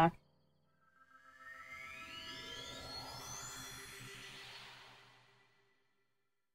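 A shimmering magical sound rises in pitch and fades.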